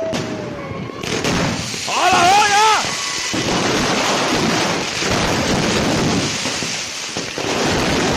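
Fireworks crackle and bang loudly.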